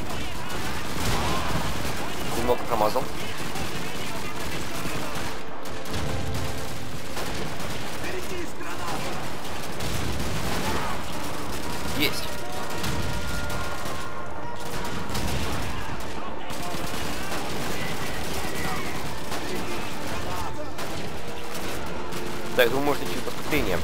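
A bolt-action rifle fires sharp shots.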